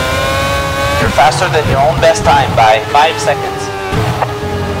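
A racing car engine crackles and pops while slowing down.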